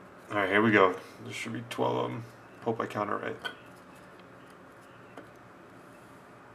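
Paper cards slide and tap softly on a table.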